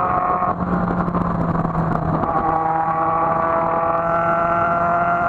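A motorcycle engine hums steadily, close by, changing pitch as it shifts gears.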